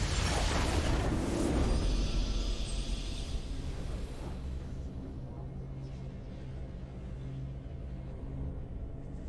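A triumphant fanfare plays.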